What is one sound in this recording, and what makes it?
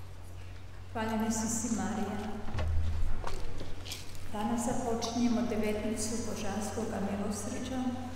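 A congregation sings together in a large, echoing hall.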